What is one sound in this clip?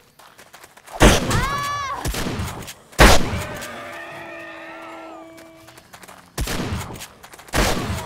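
A shotgun fires loudly several times.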